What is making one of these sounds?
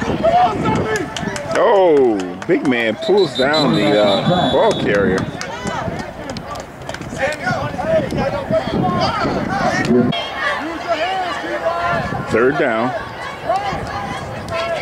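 A crowd of spectators and players shouts and cheers outdoors.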